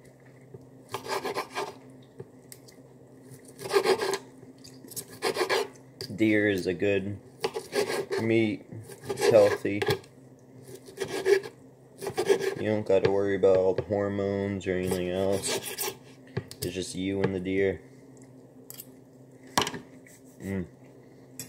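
A knife scrapes and clicks against a plate.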